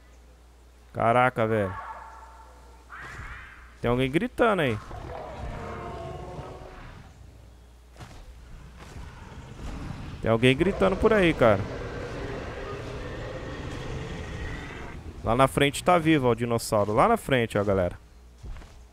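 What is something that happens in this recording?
A large creature roars and bellows loudly in bursts.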